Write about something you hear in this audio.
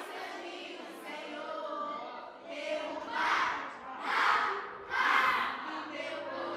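A young girl sings loudly into a microphone.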